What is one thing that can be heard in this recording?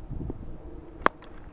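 A cricket bat cracks sharply against a ball.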